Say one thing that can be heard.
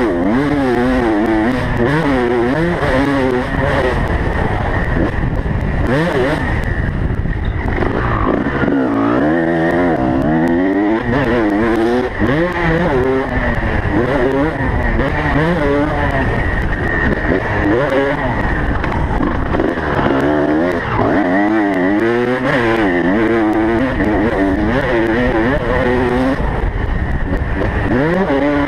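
A dirt bike engine revs hard, rising and falling in pitch as it speeds along.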